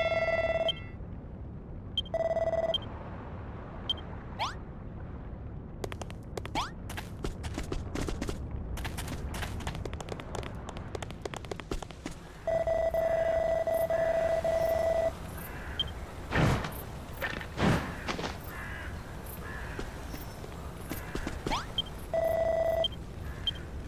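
Steady electronic blips sound as game dialogue text scrolls.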